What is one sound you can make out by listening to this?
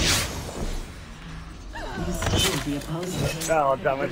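A blade slashes through the air.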